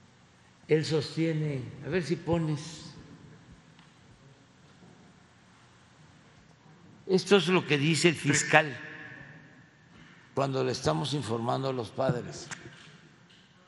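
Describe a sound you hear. An elderly man speaks into a microphone in short bursts, echoing through a large hall.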